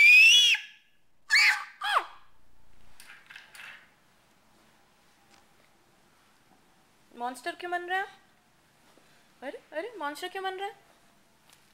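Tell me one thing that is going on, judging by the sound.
A toddler squeals and babbles close by in high, playful sounds.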